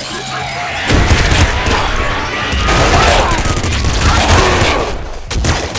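Explosions thump in a video game.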